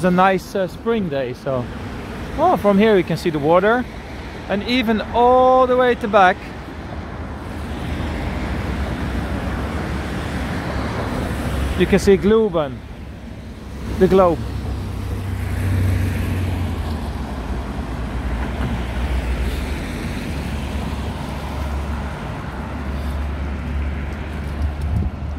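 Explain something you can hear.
Traffic rumbles steadily along a nearby road outdoors.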